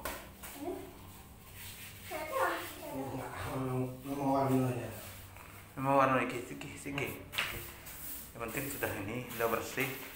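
A broom sweeps across a hard floor.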